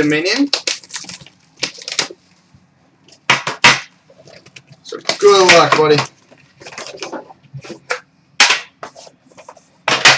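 Plastic packaging rustles and clicks in someone's hands.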